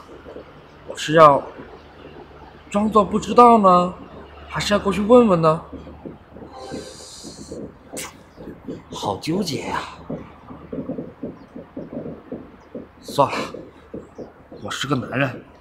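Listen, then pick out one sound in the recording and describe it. A young man speaks close by, with animation, pausing between phrases.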